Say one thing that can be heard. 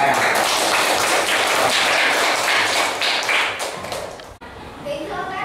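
Many children chatter and call out loudly together.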